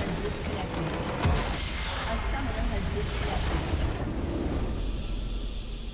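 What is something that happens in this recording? A video game structure explodes with a blast.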